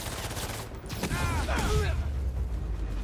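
Heavy punches and kicks thud in a brawl.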